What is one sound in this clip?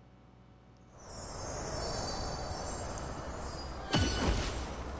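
A bright magical shimmer rings and sparkles.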